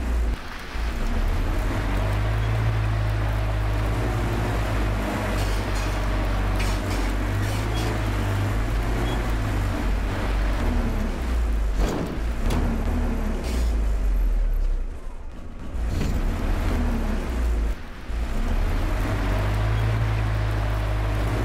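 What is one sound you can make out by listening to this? A heavy vehicle engine rumbles steadily from inside the cab.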